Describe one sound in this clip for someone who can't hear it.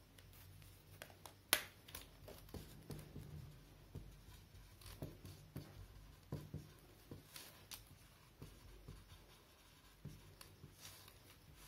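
A marker squeaks and taps as it writes on a whiteboard.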